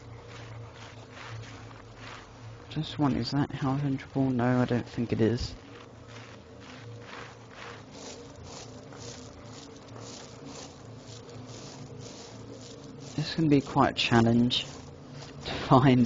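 Grass rustles softly as someone crawls through it.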